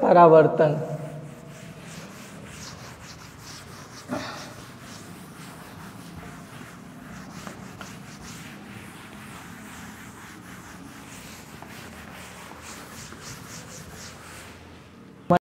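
A cloth rubs across a chalkboard, erasing it.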